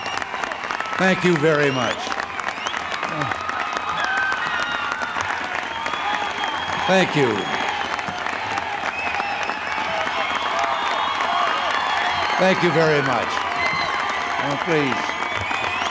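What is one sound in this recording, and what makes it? People in a crowd cheer and whoop loudly now and then.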